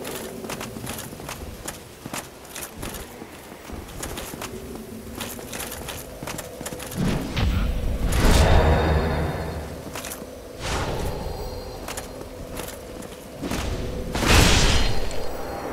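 Metal weapons clash and strike armour in a fight.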